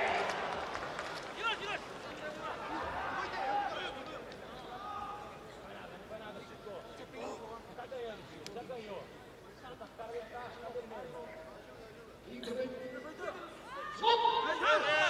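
A large crowd murmurs and calls out in an echoing arena.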